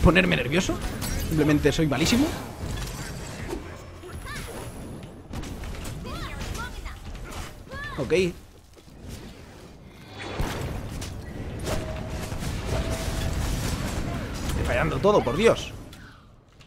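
Magic blasts and whooshes burst in a game.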